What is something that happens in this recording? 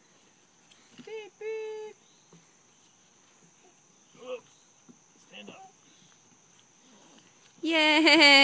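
A small child babbles and squeals close by.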